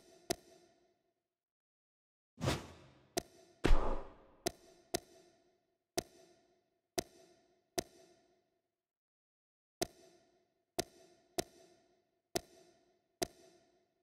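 Short electronic blips sound as a game menu selection moves.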